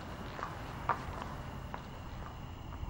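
Footsteps click on a hard floor.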